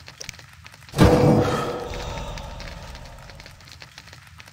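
A game menu gives a deep whooshing chime that fades.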